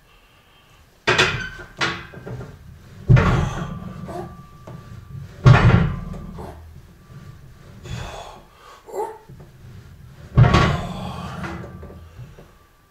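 A man grunts and breathes hard with effort, close by.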